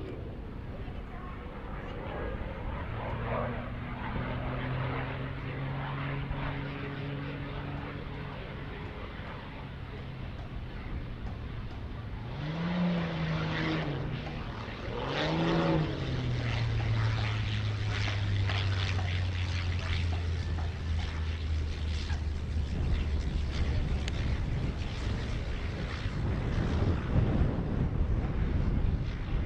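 A small propeller plane's engine drones steadily, rising and falling in pitch.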